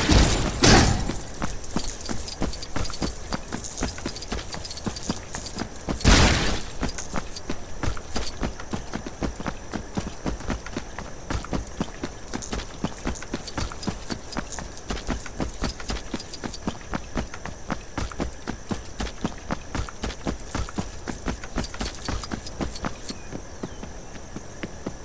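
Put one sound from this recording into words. Footsteps patter quickly across the ground.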